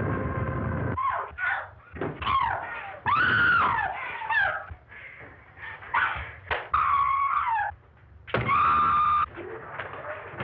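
A woman screams in terror.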